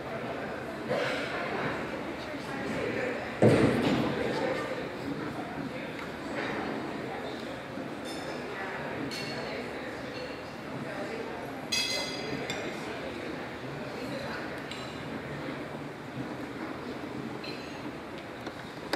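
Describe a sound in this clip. A crowd of men and women chatter and murmur in a room.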